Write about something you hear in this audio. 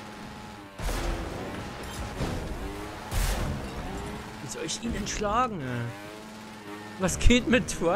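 A motorbike engine revs and whines.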